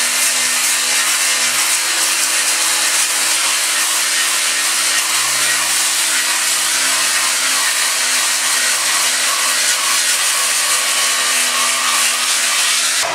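An angle grinder whines steadily as its disc grinds against metal.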